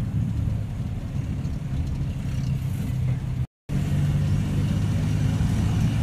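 A car engine hums steadily from inside the vehicle as it drives.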